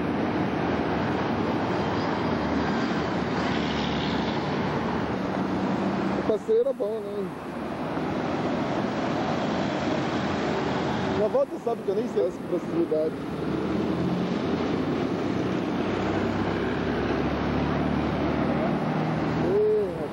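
Buses and cars rush past on a busy road outdoors.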